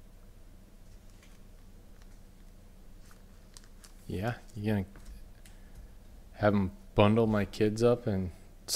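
Trading cards rustle and tap softly as they are handled.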